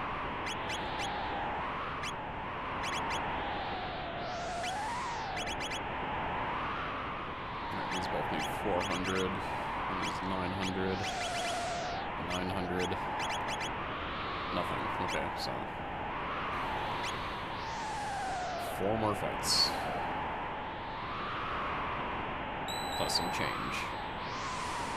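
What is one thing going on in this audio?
Short electronic menu blips click now and then.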